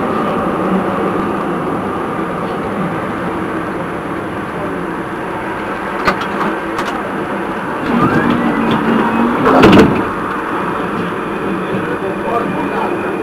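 A tram hums and rumbles steadily along the rails.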